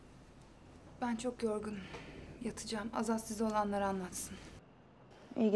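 A man speaks quietly and tensely nearby.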